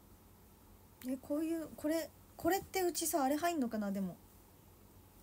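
A young woman speaks close by in a bright, sing-song voice.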